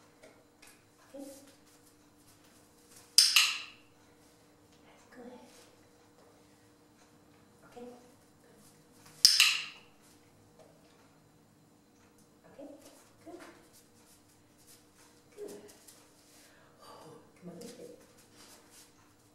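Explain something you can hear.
A woman speaks softly and briefly at a distance.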